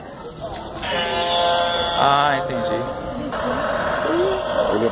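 A toy ship plays a bright electronic tune close by.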